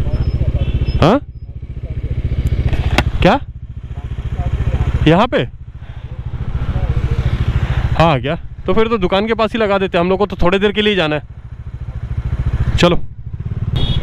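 A motorcycle engine revs up sharply several times.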